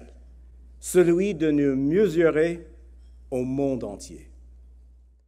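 A middle-aged man speaks calmly through a microphone.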